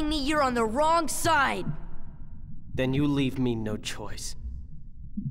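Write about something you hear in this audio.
A young man speaks forcefully.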